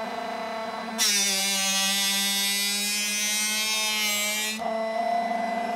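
A drill bit grinds against a sharpening wheel with a high whine.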